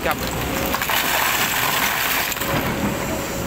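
An excavator bucket dumps loose rock onto a pile.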